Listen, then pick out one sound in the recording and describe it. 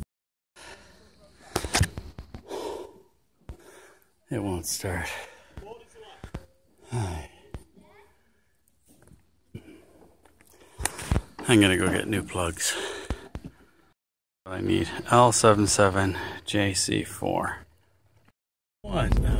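A middle-aged man talks close to a microphone, casually and with animation.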